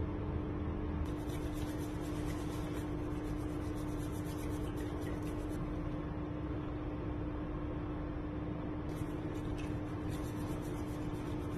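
A bamboo whisk briskly swishes through liquid in a bowl.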